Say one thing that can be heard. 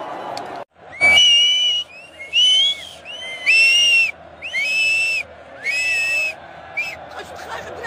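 A woman whistles shrilly through her fingers in repeated bursts.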